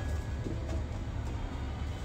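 A wooden spatula scrapes and stirs in a frying pan.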